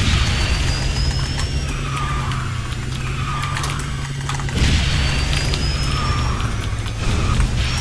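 A racing game kart engine drones steadily.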